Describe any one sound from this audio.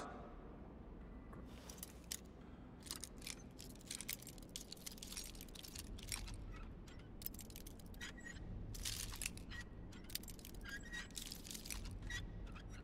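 A metal lockpick scrapes and clicks inside a lock.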